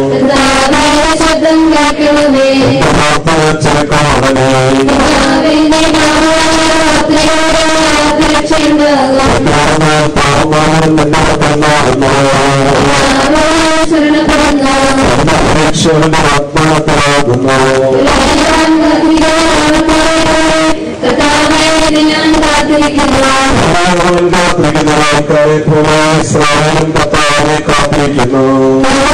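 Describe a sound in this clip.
A crowd of men and women sings a slow hymn together.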